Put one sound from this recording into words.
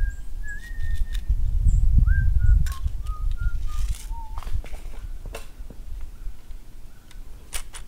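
A metal ramrod scrapes and clinks inside a gun barrel.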